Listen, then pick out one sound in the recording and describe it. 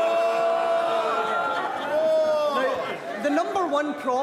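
A crowd of men and women laughs and jeers.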